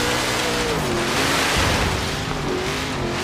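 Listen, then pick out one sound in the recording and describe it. Tyres skid and spray through mud.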